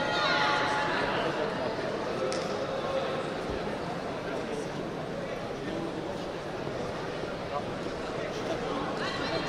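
A large crowd murmurs and chatters throughout a big echoing hall.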